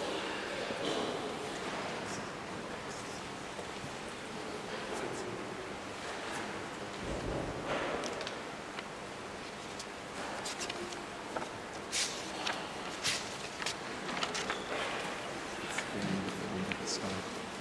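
A man chants a prayer through a microphone in a large echoing church.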